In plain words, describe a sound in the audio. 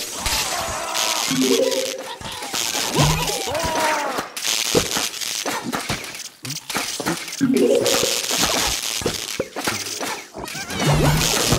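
Electric zaps crackle and buzz rapidly.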